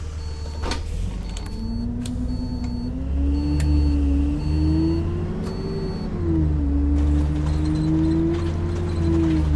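A bus engine revs up and rises in pitch as the bus pulls away.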